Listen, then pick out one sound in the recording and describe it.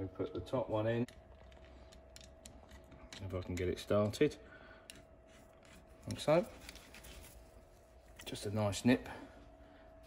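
A screwdriver turns a screw in metal with short squeaking bursts.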